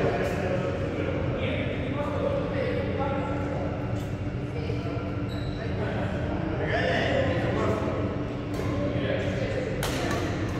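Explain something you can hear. Young adults talk and call out across the hall.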